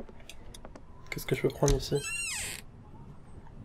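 A cabinet door creaks open with a rattle.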